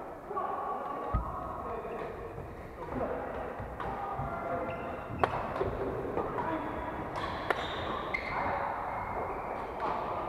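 Shoes squeak on a wooden court.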